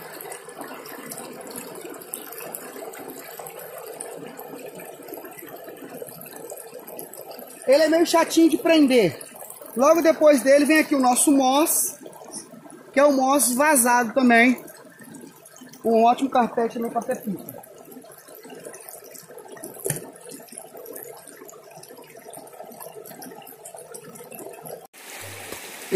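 Water rushes and splashes steadily over rocks.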